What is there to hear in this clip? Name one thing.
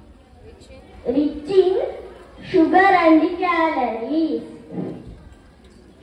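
A boy speaks loudly and clearly into a microphone through a loudspeaker.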